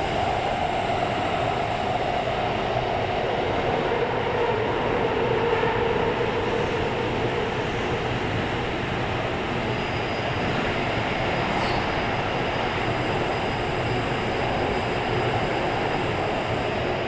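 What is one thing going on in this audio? A subway train rumbles and hums steadily as it runs along the track.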